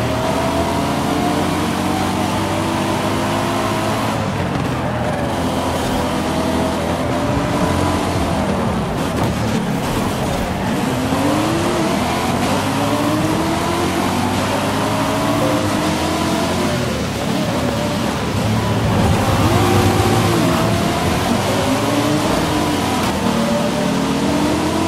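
A sports car engine roars and revs up and down as the car races.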